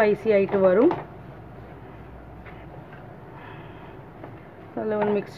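A spoon stirs and scrapes food in a pan.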